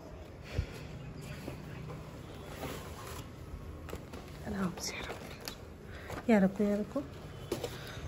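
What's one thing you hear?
A pizza box rustles as it is handed over.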